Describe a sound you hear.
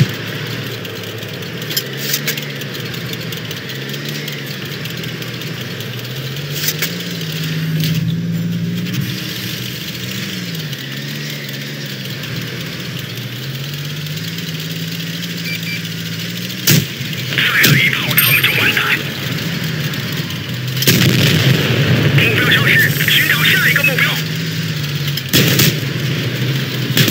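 A light tank's engine rumbles as the tank drives.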